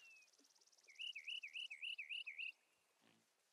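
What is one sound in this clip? Electronic menu sounds chirp in a quick run.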